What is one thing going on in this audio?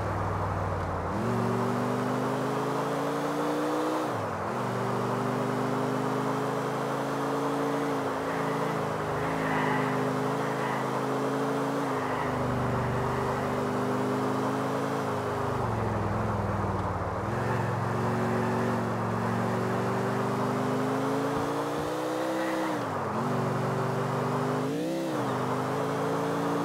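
Tyres hiss on the road surface.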